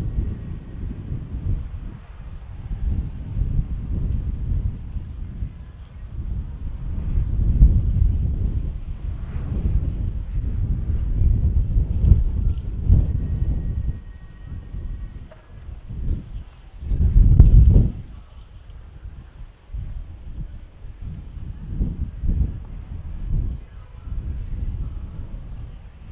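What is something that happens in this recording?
A horse's hooves thud on soft sand as it canters.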